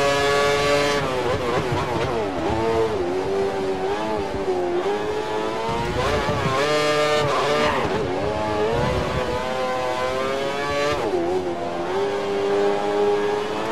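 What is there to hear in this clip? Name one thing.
A racing car engine drops in pitch as the car brakes and shifts down, then revs up again.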